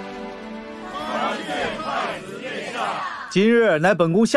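A crowd of people call out a greeting together in unison.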